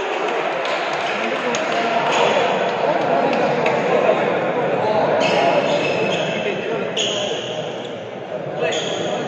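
Rackets strike a shuttlecock in a large echoing hall.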